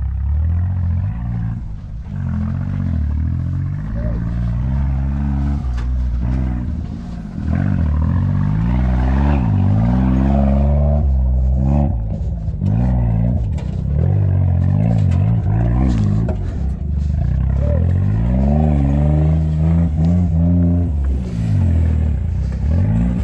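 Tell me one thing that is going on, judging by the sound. A small off-road engine revs up and down, loud and close.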